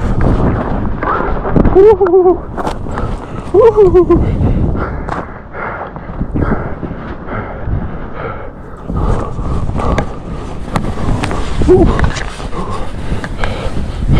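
Skis swish and hiss through deep powder snow.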